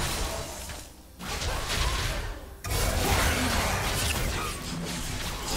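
Video game spell effects whoosh and burst in a busy fight.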